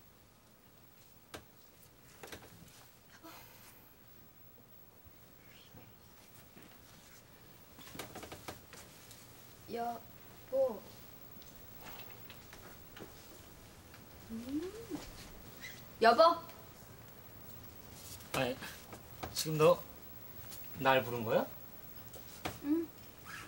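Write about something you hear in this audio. A young woman speaks softly from across the room.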